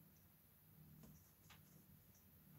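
Small objects click softly against a hard surface nearby.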